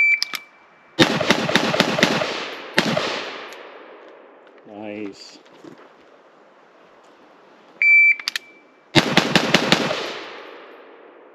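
A rifle fires rapid bursts of shots outdoors.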